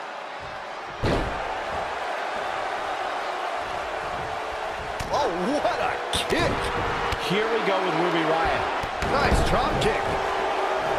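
A heavy body thuds onto a wrestling ring mat.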